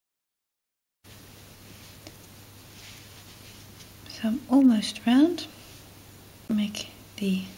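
Yarn rustles softly as a hook pulls it through stitches.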